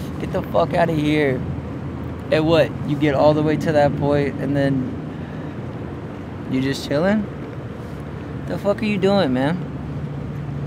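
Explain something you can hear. A young person speaks softly close by.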